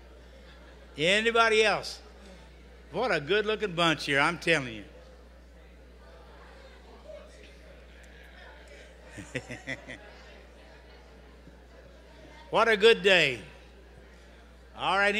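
A man speaks slowly through a microphone and loudspeakers in a large hall, with long pauses.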